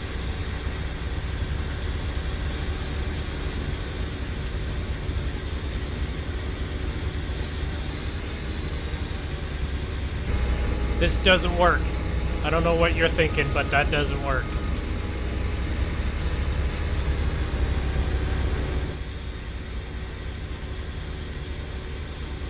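A truck engine hums with a steady low rumble.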